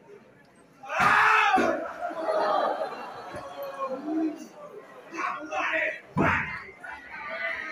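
A young man speaks into a microphone over loudspeakers in an echoing hall.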